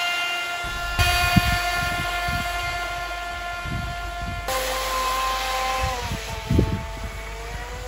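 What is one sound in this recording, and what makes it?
Wind rumbles against a nearby microphone.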